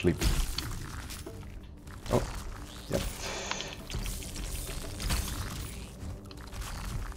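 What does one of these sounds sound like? Weapons clash and strike with sharp hits.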